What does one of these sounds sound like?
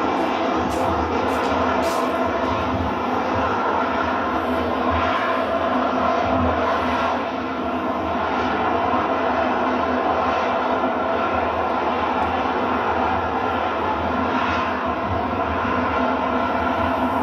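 A jet engine roars loudly and steadily as a jet hovers overhead.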